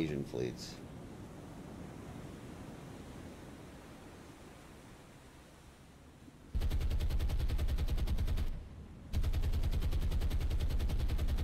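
Waves wash steadily across open sea.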